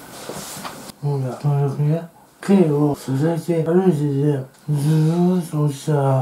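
A man talks calmly and close to the microphone.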